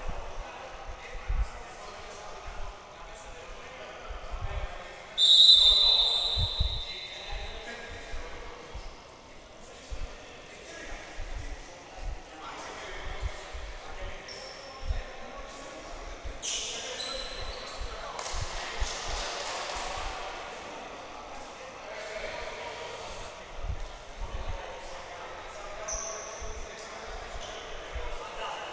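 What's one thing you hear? A basketball bounces with thuds on the floor.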